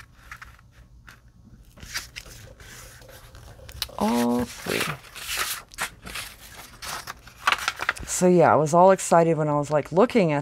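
Paper rustles and slides across a hard surface.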